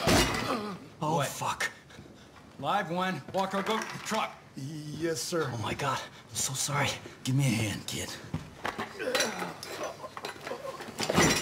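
A man groans and pleads in a strained voice.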